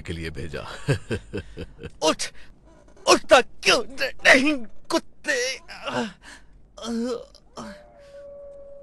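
A man speaks tensely and loudly, close by.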